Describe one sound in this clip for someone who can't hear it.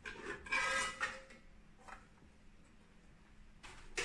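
A metal cover clanks as it is lifted off.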